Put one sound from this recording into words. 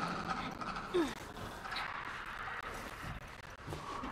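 A body thumps as someone drops over a ledge.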